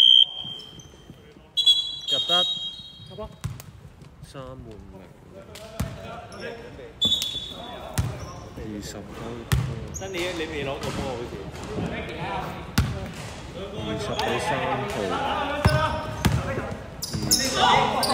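A basketball bounces on the court with thuds.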